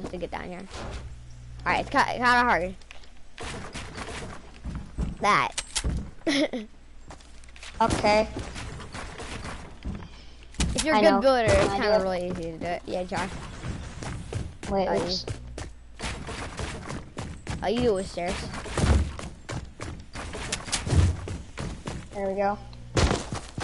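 Wooden panels snap into place with quick knocking clatters.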